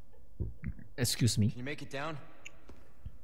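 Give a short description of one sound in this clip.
A man speaks tensely, calling up to someone.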